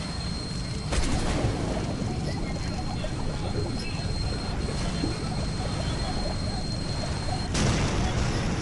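A muffled explosion booms.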